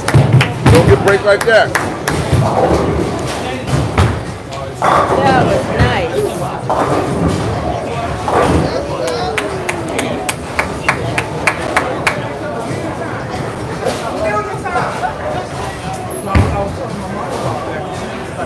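Bowling pins crash and clatter nearby in an echoing hall.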